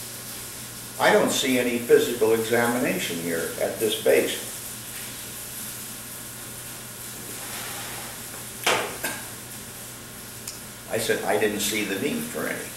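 An elderly man talks calmly, close by.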